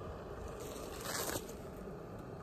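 A padded jacket rustles as an arm reaches out.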